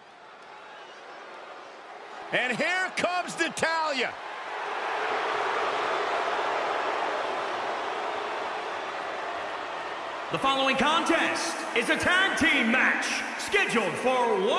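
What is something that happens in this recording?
A large crowd cheers and roars in a big echoing arena, swelling louder.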